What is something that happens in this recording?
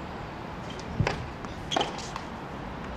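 A tennis ball is struck sharply with a racket, outdoors.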